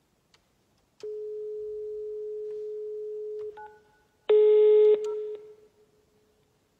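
A telephone gives a steady dial tone and then beeps.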